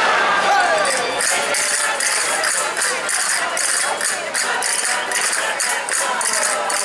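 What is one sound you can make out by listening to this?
Castanets click rapidly in rhythm.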